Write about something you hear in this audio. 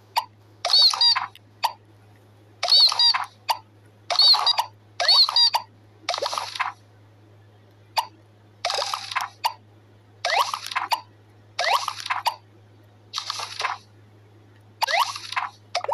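Bright cartoon chimes and sparkly jingles play in short bursts as toys snap into place.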